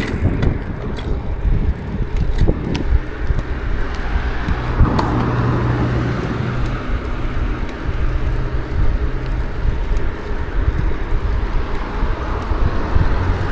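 Bicycle tyres roll and rattle over paving stones.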